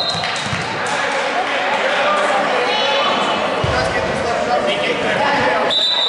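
A crowd chatters throughout a large echoing gym.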